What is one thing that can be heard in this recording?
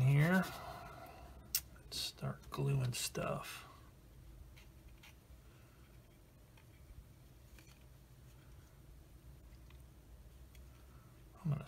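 Small plastic parts click and tap softly as hands handle them.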